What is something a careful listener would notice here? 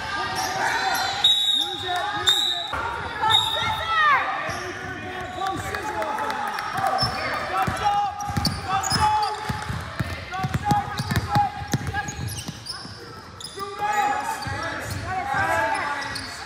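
Girls shout and call out to each other in an echoing gym.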